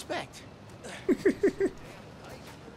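A young man laughs in short bursts into a microphone.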